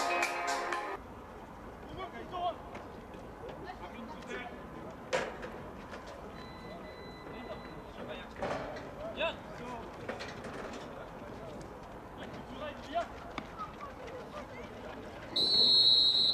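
Men call out across an outdoor field, at a distance.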